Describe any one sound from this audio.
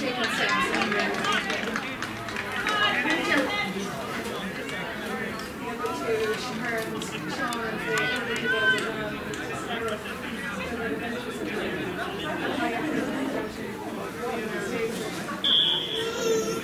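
Young girls shout and call out across an open field.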